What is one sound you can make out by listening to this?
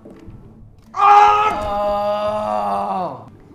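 A young man screams loudly in dismay.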